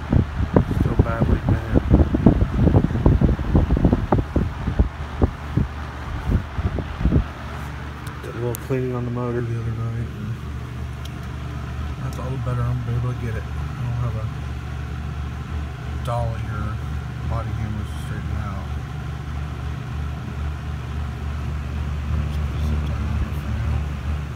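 A box fan hums steadily with a low drone.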